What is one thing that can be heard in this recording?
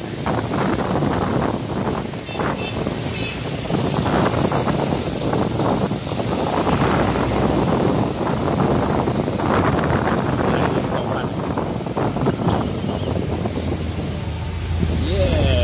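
Tyres hiss on a wet road as traffic moves along.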